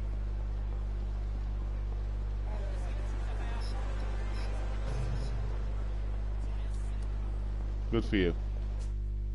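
A crowd murmurs in a busy street.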